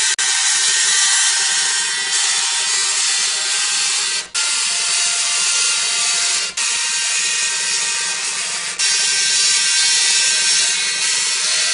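A dot matrix printer buzzes loudly as its print head sweeps back and forth, pausing briefly between passes.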